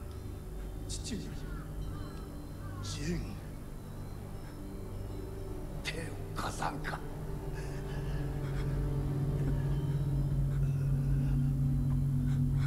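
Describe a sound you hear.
A young man pleads in a strained, shaky voice.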